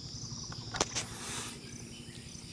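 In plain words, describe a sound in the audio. A snake hisses sharply.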